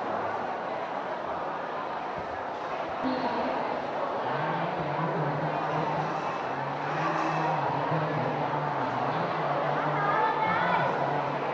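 A young woman speaks into a microphone over loudspeakers.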